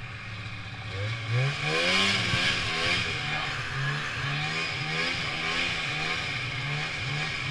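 A snowmobile engine revs up and down repeatedly.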